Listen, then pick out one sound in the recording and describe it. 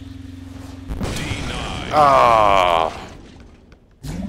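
A loud explosion bursts and crackles, then fades.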